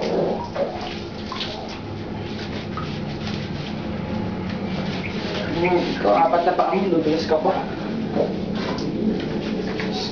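Hands scrub and lather wet fur.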